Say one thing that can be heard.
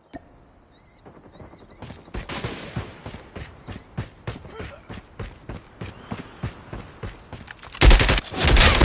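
Footsteps thud quickly on dirt.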